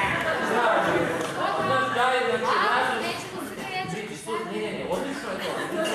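A young woman speaks with animation in a hall.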